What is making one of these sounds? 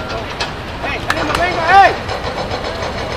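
Young men shout to each other across an open pitch outdoors.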